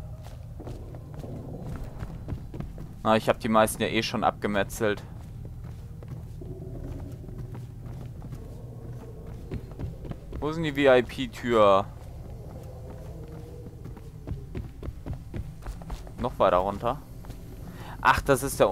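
Light footsteps patter quickly across a hard floor.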